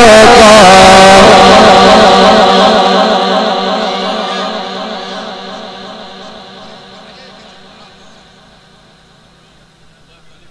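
A man chants a long, wavering held note through a loudspeaker, slowly fading away.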